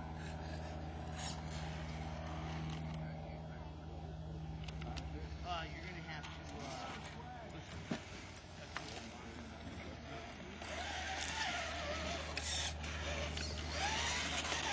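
Plastic tyres scrape and crunch on rock.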